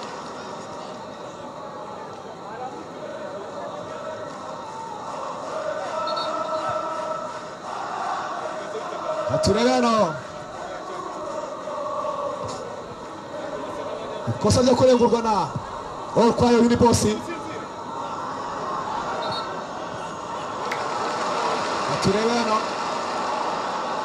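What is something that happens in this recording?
Several young men argue loudly nearby, outdoors.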